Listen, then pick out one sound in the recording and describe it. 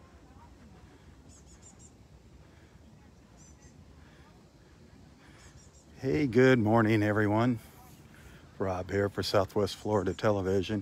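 Gentle waves lap softly at the shore.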